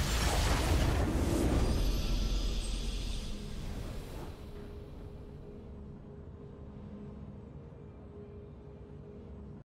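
A triumphant fanfare plays, then settles into a soft hum.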